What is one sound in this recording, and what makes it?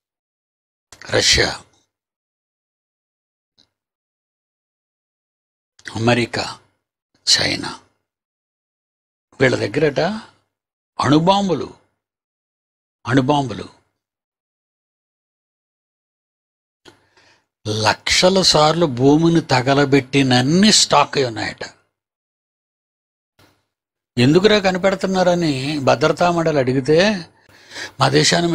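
An elderly man speaks into a microphone with animation, in short bursts broken by pauses.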